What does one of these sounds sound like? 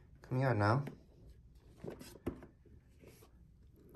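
A cardboard lid scrapes and slides open.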